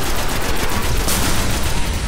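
A heavy energy weapon fires a long, roaring blast.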